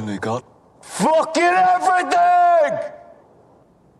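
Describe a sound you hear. A man shouts loudly and with anguish.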